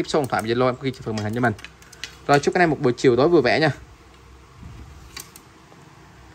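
Fishing rods knock lightly together as they are handled.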